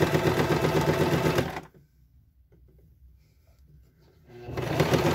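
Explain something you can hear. A sewing machine whirs and rattles rapidly as it stitches fabric.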